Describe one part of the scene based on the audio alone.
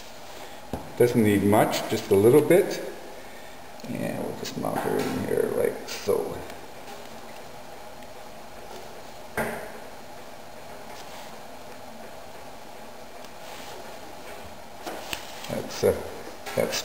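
Paper rustles as it is handled and pressed down.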